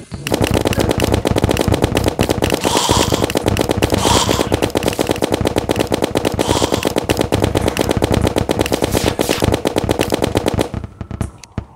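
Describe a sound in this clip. A weapon fires rapid shots in quick succession.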